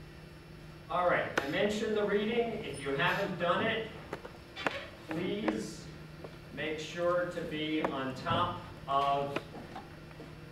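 A man speaks calmly into a microphone, lecturing.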